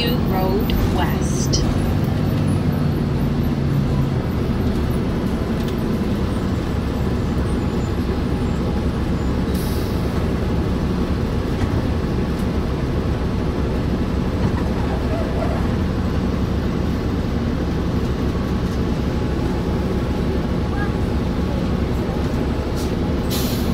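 A vehicle rumbles steadily from inside as it drives along.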